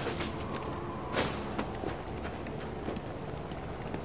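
Heavy footsteps thud on a hard rooftop.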